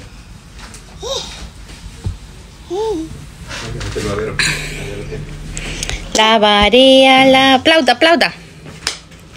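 A baby coos and babbles up close.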